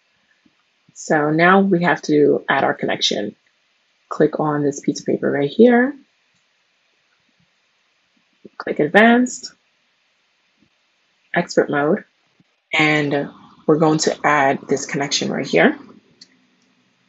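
A young woman speaks calmly and clearly into a close microphone, in short bursts with pauses.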